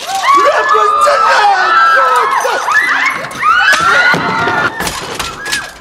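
A crowd of men and women shouts and screams in alarm.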